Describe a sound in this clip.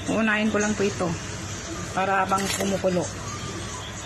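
Food splashes into a pot of water.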